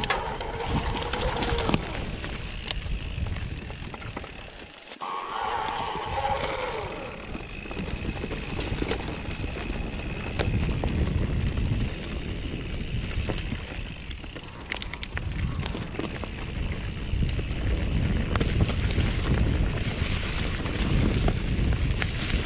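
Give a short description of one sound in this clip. Wind rushes past a microphone outdoors.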